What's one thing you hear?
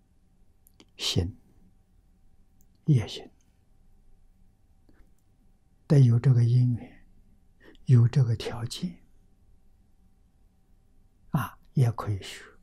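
An elderly man speaks calmly in short phrases, with pauses, close to a microphone.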